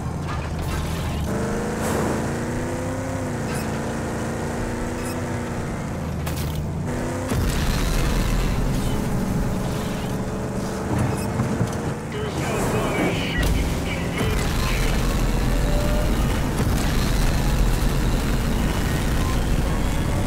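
Tyres crunch over dirt and gravel.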